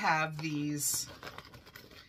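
A plastic mesh pouch crinkles in a woman's hands.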